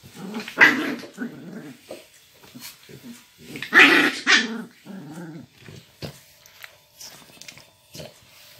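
Paws scuffle and rustle on a blanket.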